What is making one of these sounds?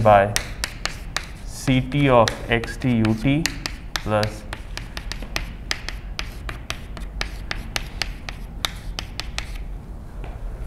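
Chalk taps and scrapes quickly on a blackboard.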